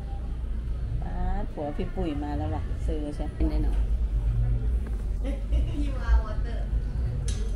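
A middle-aged woman talks cheerfully close by.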